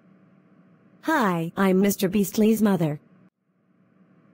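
A woman speaks brightly through a microphone.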